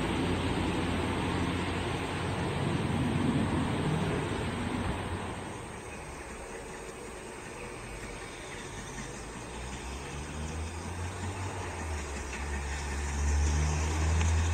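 Railway carriages rumble and clatter along the track.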